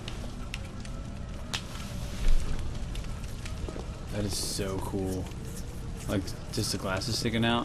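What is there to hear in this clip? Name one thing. A torch fire crackles and flickers.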